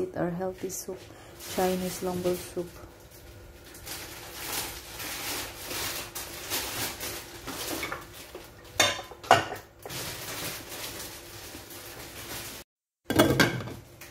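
Soup simmers and bubbles softly in a pot.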